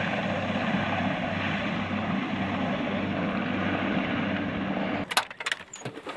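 A helicopter's rotor thumps loudly.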